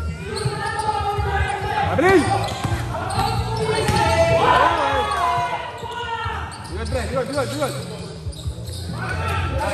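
Young men shout and call out to each other across the court.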